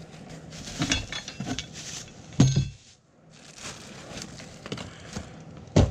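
A cardboard box rustles as hands reach inside.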